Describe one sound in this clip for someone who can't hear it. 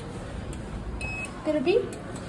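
An elevator button beeps once when pressed.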